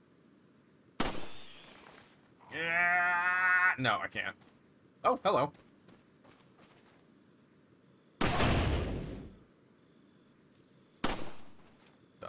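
A pistol fires loud, echoing shots.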